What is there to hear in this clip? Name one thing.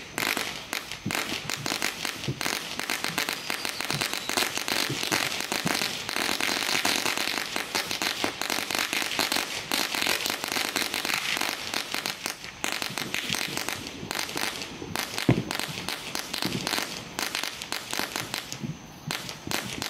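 Fireworks crackle and pop nearby.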